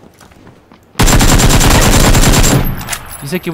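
A rifle fires a rapid burst of shots up close.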